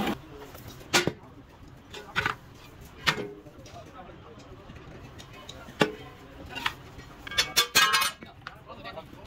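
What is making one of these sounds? Steel castings clank against each other.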